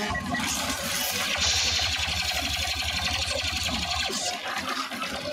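Laser bolts crackle and explode nearby.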